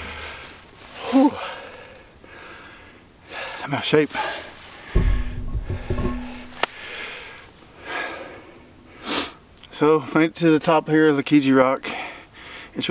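A middle-aged man talks with animation, close to a microphone.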